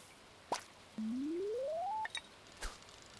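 A rising electronic tone swells as a fishing rod is drawn back for a cast.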